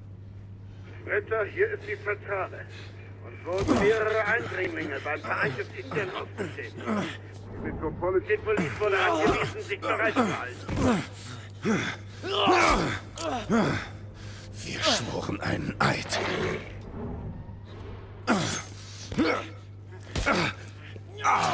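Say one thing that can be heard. A man shouts and groans in pain.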